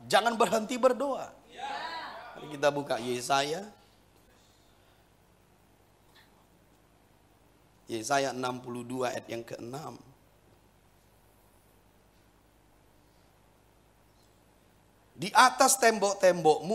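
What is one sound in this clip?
A middle-aged man speaks calmly and slowly through a microphone, pausing between phrases.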